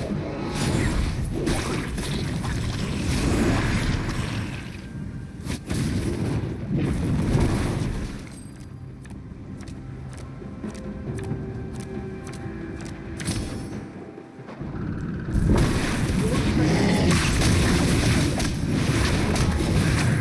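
Video game spell blasts and clashes of a fight sound loudly.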